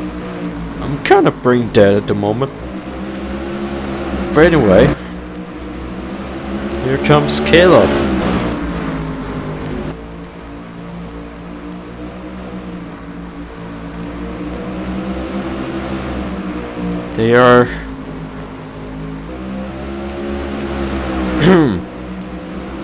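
Race cars roar past up close, their engines rising and falling in pitch.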